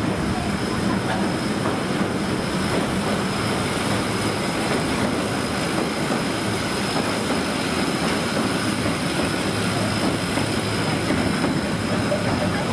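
A tram rumbles and clatters along a track.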